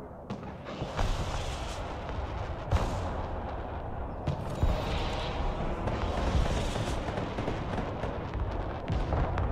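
Explosions rumble and thud in the distance.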